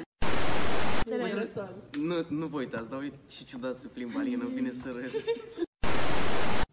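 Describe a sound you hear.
Young people talk together.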